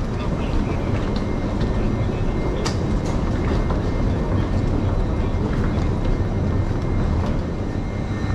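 Suitcase wheels roll over a hard floor.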